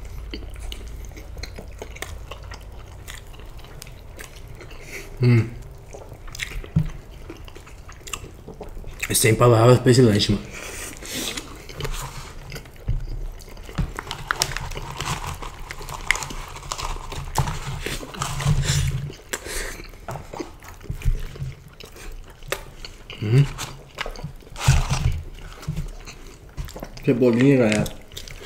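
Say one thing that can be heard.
Two young men chew and munch food close to a microphone.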